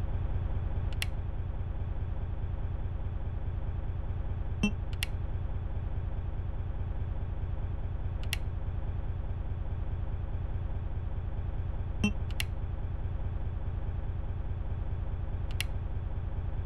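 Metal toggle switches click as they are flipped.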